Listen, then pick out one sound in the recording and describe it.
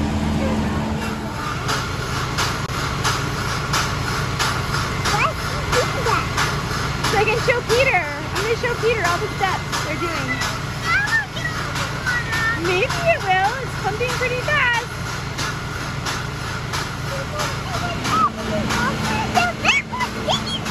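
A heavy diesel engine rumbles and knocks steadily close by.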